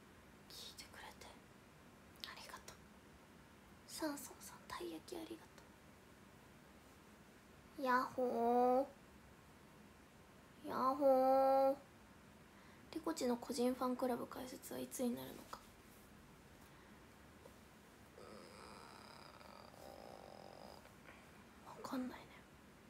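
A young woman talks up close, calmly, with pauses.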